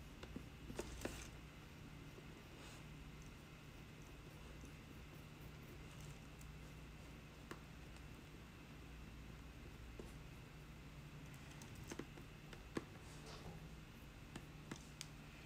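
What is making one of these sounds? A metal tool scrapes and taps against a clay pot.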